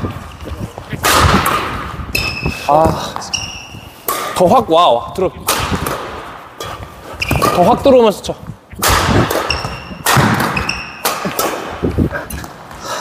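A racket smacks a shuttlecock in an echoing hall.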